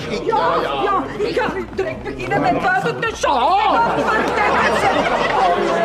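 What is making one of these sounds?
A woman shouts excitedly up close.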